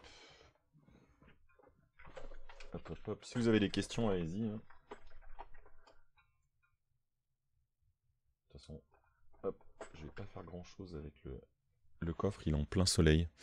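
A middle-aged man talks calmly into a nearby microphone, with pauses.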